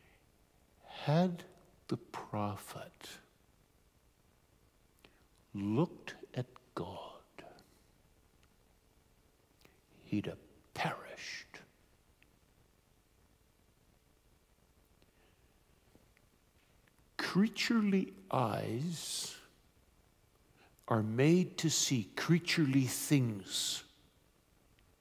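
A middle-aged man speaks calmly in bursts with pauses, heard through a microphone.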